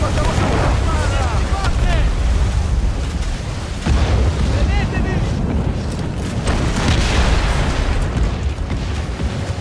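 Cannons fire with heavy booms.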